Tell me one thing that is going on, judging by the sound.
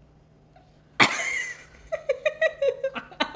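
A teenage girl laughs close by.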